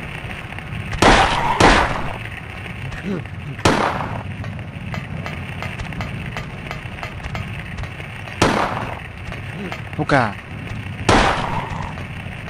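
Gunshots ring out from a handgun, each followed by a short echo.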